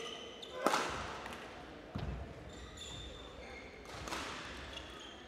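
Rackets smack a shuttlecock back and forth in an echoing hall.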